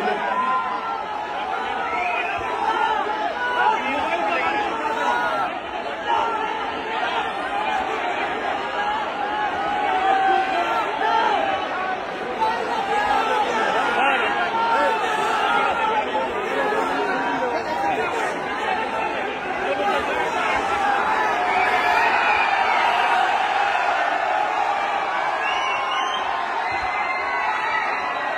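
A large crowd chatters and cheers loudly all around, echoing in a big hall.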